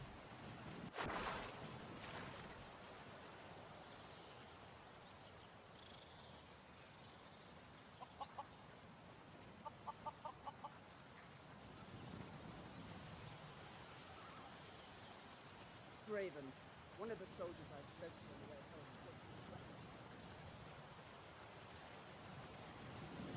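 Wind blows steadily through trees outdoors.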